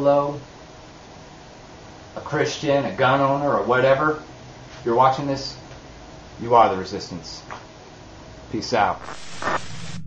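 A man speaks calmly and close up, with pauses.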